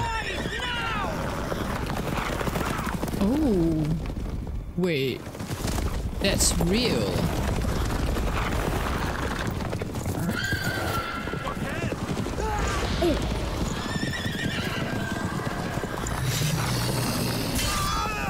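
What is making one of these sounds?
Horses gallop with thudding hooves.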